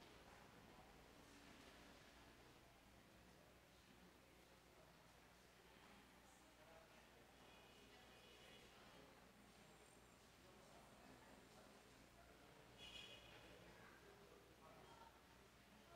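A congregation murmurs quietly in a large echoing hall.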